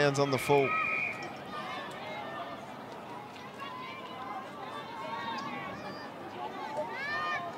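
Spectators call out from the stands in the distance.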